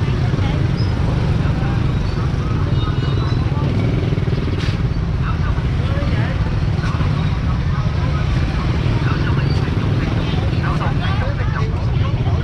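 Men and women chatter around in a busy outdoor crowd.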